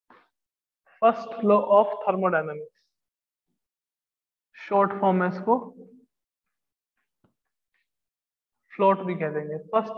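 A man speaks calmly, explaining in bursts, heard close by.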